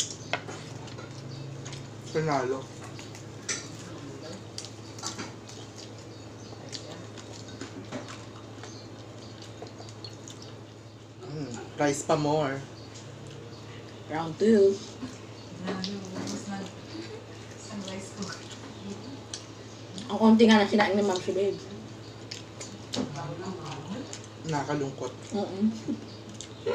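Crispy food crunches and crackles as it is eaten.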